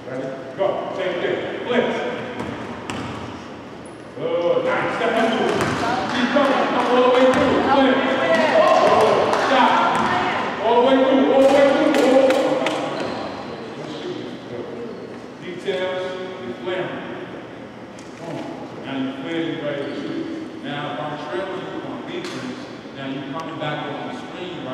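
Young men talk and call out loudly in a large echoing hall.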